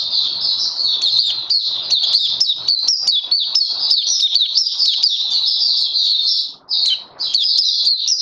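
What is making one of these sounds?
A small bird sings a fast, high, warbling song close by.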